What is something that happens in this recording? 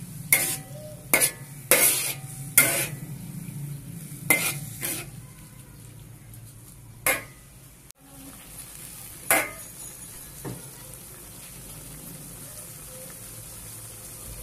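Food sizzles in hot oil.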